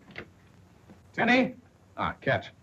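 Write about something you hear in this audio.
A man opens a door.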